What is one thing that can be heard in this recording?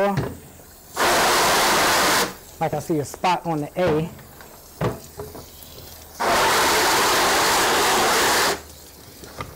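Water sprays hard from a hose nozzle in loud bursts.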